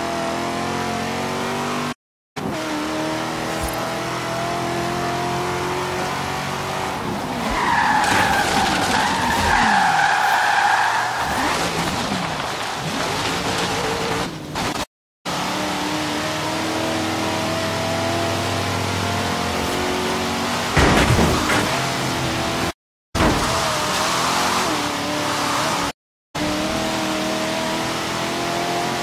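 A car engine roars steadily, rising and falling in pitch as the car speeds up and slows down.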